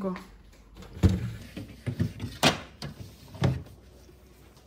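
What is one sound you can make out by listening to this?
A plastic fridge shelf clatters and knocks as it is pulled out.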